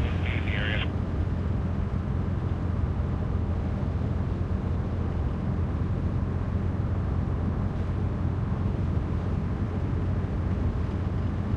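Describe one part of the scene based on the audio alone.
Tyres roll on the road surface.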